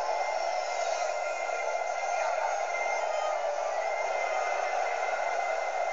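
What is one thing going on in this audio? A crowd roars and cheers through a loudspeaker.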